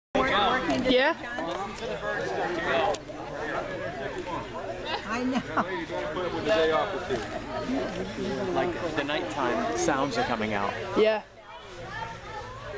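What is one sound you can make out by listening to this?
Several adults chat and talk over one another close by, outdoors.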